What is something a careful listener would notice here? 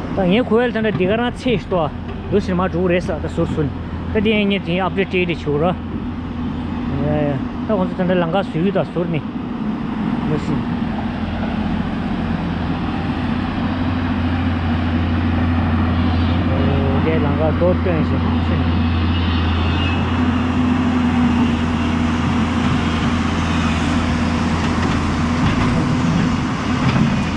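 An excavator bucket splashes through water.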